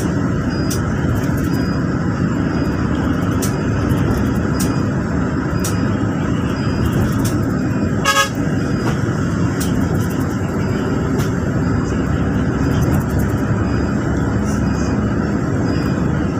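Tyres roar steadily on a highway.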